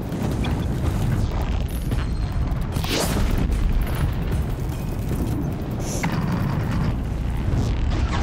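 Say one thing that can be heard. Flames crackle and burn.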